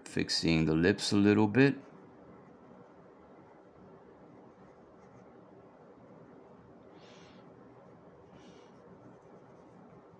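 A pen scratches lightly on paper.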